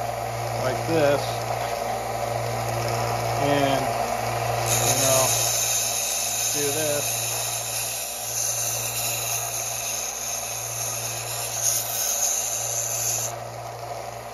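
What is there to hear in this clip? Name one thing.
A cordless drill whirs.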